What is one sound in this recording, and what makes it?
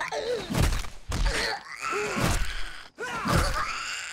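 A weapon strikes a body with heavy thuds.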